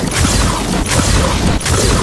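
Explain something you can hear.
Flames roar and crackle in a fiery blast.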